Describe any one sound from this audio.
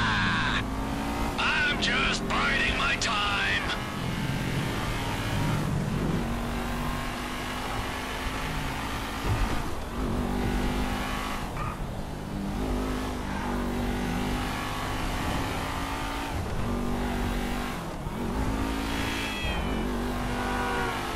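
A car engine hums steadily and revs.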